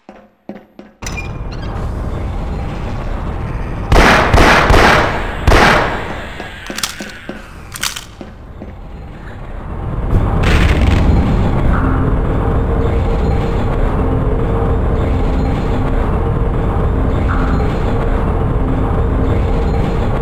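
A conveyor belt rumbles loudly and steadily.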